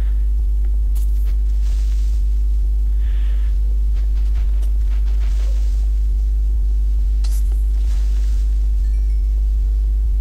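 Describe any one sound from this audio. A sword strikes a creature with dull thuds.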